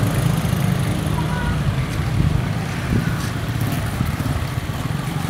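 Motorcycle engines hum and putter past on a street.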